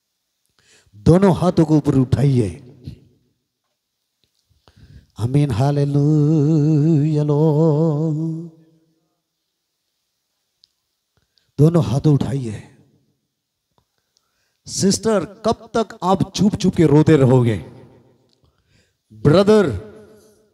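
A man prays loudly and with fervour into a microphone, his voice booming through loudspeakers, in bursts with pauses between.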